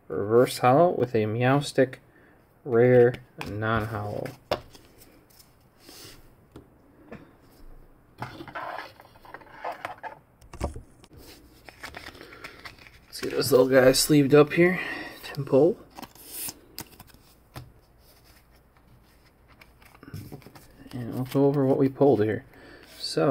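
Playing cards rustle and slide softly as they are handled.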